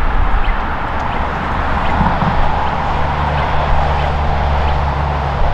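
A camper van drives past at a distance with a low engine hum.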